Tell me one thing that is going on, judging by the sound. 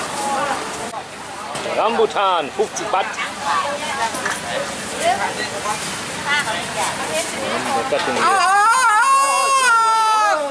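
Men and women chat nearby in a busy outdoor crowd.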